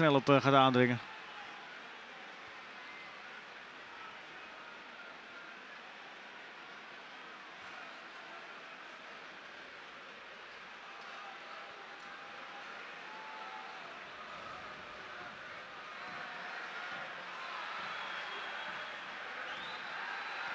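A stadium crowd murmurs and cheers outdoors.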